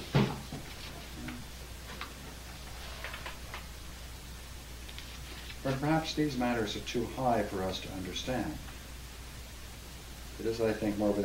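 An elderly man reads aloud from a book in a calm, measured voice.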